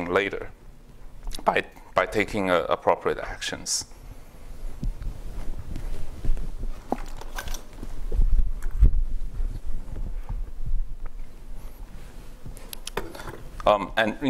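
A young man speaks calmly into a microphone in a large room.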